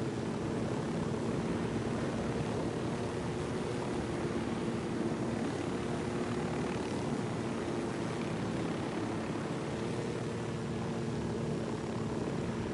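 A helicopter's turbine whines.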